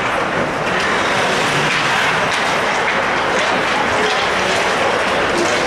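Hockey sticks click against the puck.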